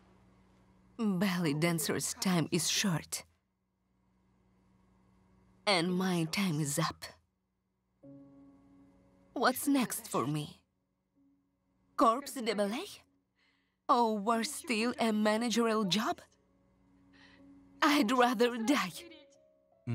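A man speaks quietly and emotionally up close.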